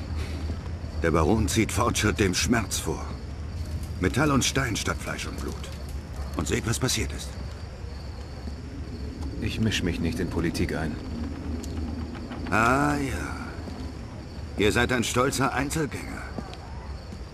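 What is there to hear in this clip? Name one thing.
A man speaks in a low, calm voice, close by.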